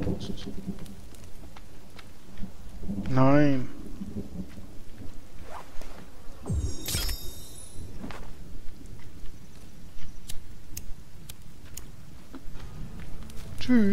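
A flame bursts up and crackles nearby.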